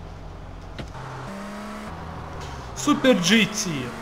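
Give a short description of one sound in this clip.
A car engine revs as the car speeds away.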